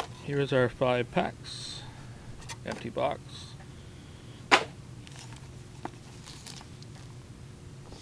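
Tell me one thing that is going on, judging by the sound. Paper packs crinkle and slide as they are handled.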